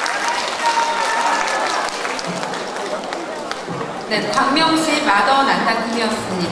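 Women sing loudly together.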